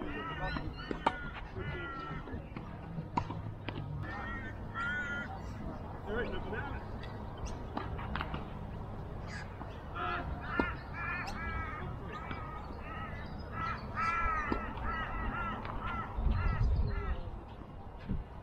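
Tennis balls are struck with rackets in sharp pops.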